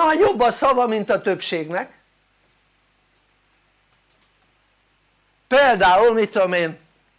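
An elderly man speaks calmly into a microphone, lecturing.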